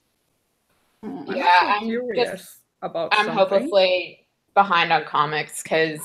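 A young woman speaks casually over an online call.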